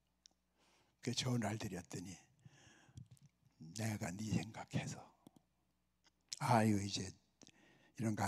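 A middle-aged man speaks with animation through a microphone, in bursts with pauses.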